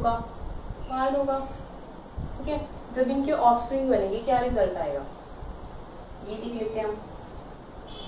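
A young woman speaks calmly, explaining.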